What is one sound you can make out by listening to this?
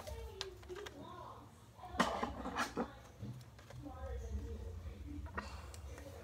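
A paper card rustles in a hand.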